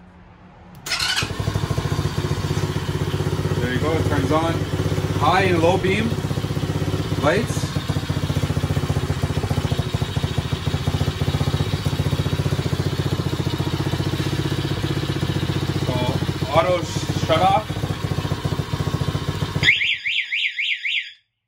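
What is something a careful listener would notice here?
A small engine starts and idles with a steady rattle.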